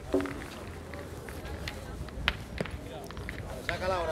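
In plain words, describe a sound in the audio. A metal boule thuds onto gravel.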